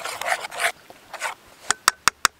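A spoon stirs thick wet batter with squelching sounds.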